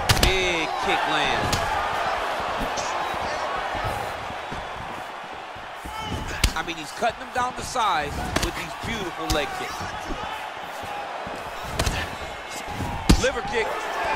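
Punches land with sharp thuds.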